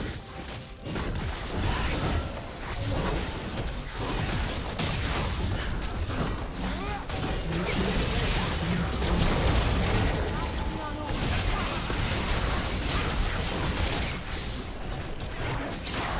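Spell blasts, clashes and explosions of a fast-paced video game battle ring out throughout.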